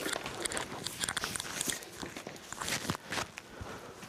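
A bag strap and clothing rustle as they are handled.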